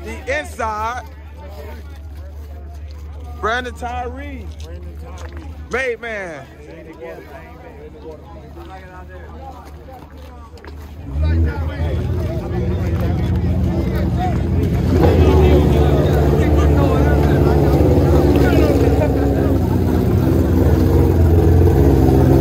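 A crowd of men and women chatters and shouts outdoors.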